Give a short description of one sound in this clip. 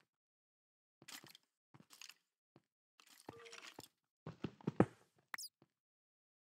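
A pickaxe chips and breaks stone blocks.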